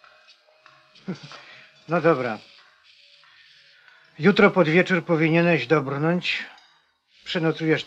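A man speaks loudly and with animation nearby.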